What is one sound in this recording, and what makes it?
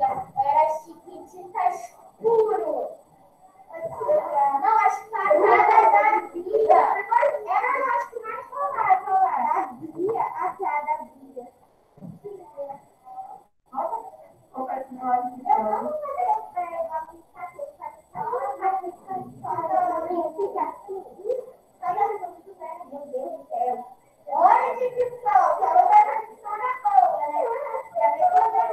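A woman speaks calmly and steadily through a microphone on an online call.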